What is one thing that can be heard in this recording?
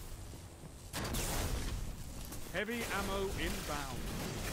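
Gunfire blasts loudly in rapid bursts.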